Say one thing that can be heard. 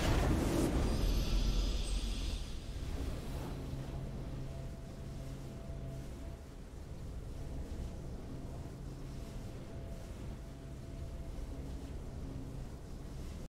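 A soft triumphant victory tune plays.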